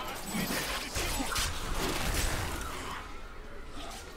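Weapons clash in a fight.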